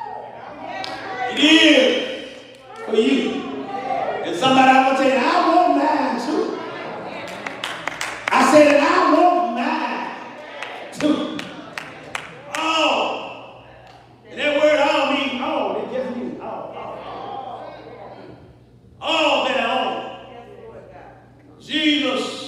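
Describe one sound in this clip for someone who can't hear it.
A man preaches with animation into a microphone in a large echoing hall.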